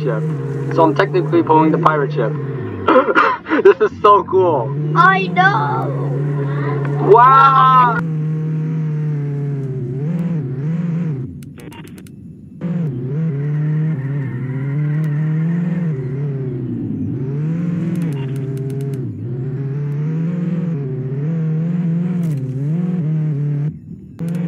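A car engine hums steadily, rising and falling in pitch as it speeds up and slows down.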